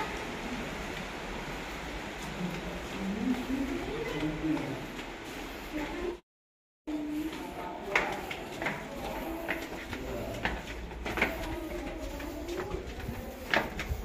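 Sandals slap on a stone floor as people walk.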